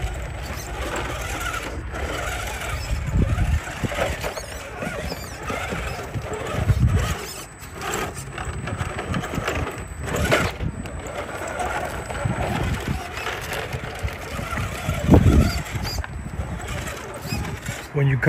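A small electric motor whines as a toy truck crawls.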